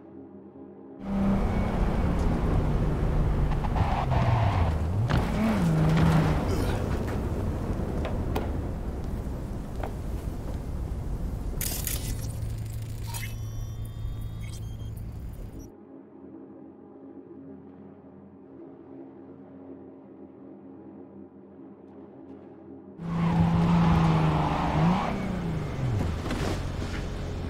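A car engine revs loudly, rising and falling in pitch.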